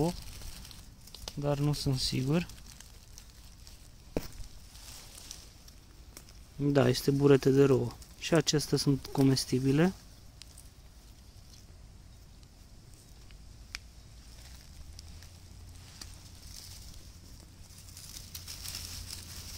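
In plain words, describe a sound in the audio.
Dry leaves rustle softly as a hand brushes through them.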